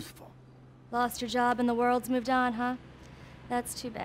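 A young woman speaks brightly, close by.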